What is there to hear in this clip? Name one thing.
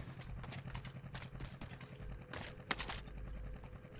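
A gun fires a short burst.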